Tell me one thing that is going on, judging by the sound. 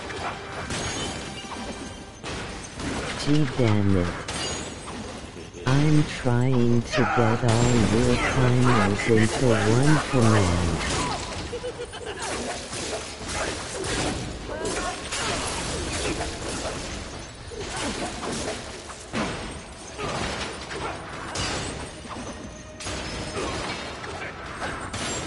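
Blades swing and strike with sharp hits.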